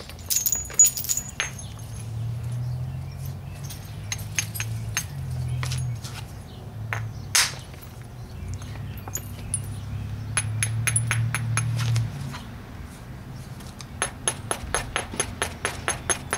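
An antler tool strikes and scrapes a stone in sharp clicks and taps.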